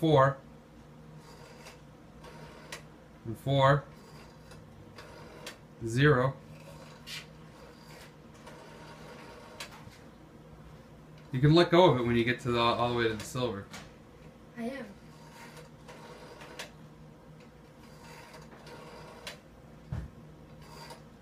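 A rotary phone dial whirs and clicks as it turns back.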